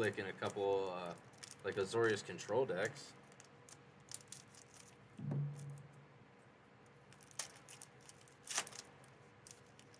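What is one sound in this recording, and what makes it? A foil wrapper crinkles and tears open in hands.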